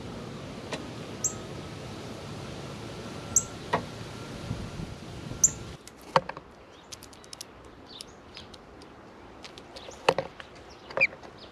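Birds flutter their wings as they land and take off.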